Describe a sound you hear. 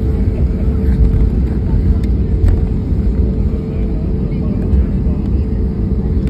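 A jet airliner's engines rumble with a steady hum as it taxis, heard from inside the cabin.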